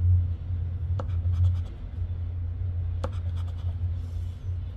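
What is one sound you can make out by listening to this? A plastic chip scrapes across a scratch card in short, quick strokes.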